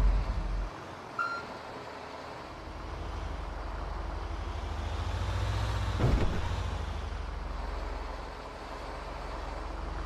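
A bus engine rumbles low and steadily, growing louder as it speeds up.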